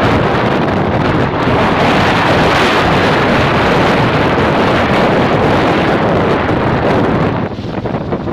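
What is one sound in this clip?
Wind rushes loudly against the microphone.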